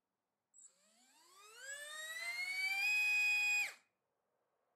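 An electric motor spins up a propeller with a rising whine, then cuts off abruptly.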